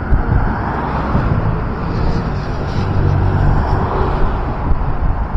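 A tram rolls past with a low rumble.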